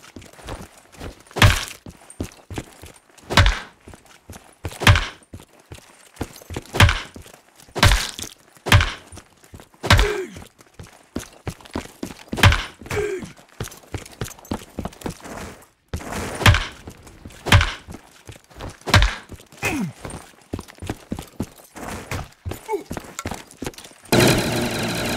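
A gun fires single loud shots, one every second or two.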